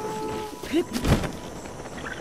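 A glider snaps open with a sudden whoosh.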